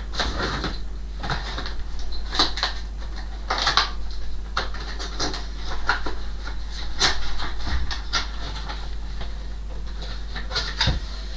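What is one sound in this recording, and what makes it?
Paper and objects rustle and knock close by.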